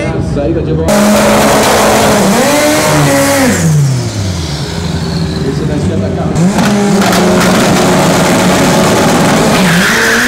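A car engine revs loudly, rising and falling.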